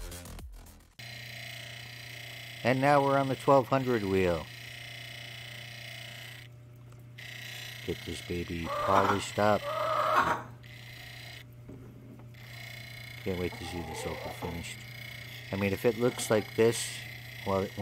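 A grinding wheel spins with a steady hum.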